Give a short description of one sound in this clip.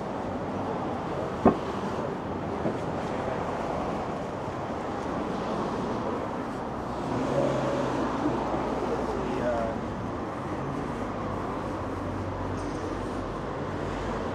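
Footsteps tap steadily on a pavement outdoors.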